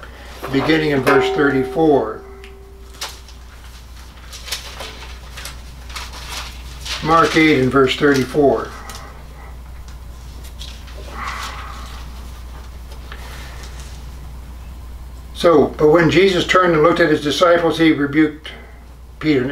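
An elderly man reads aloud slowly and calmly, close by.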